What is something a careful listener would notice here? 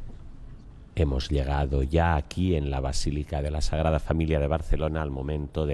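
An elderly man speaks solemnly into a microphone, echoing in a large hall.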